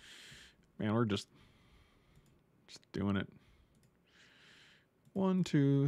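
A middle-aged man speaks in short, drawn-out bursts close to a microphone.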